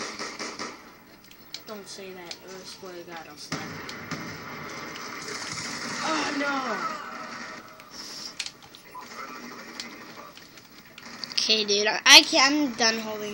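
Gunshots from a video game crack from a television's speaker.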